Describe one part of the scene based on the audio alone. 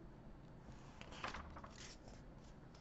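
A book's paper page turns with a soft rustle.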